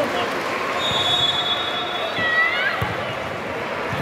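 A volleyball is struck hard with a hand.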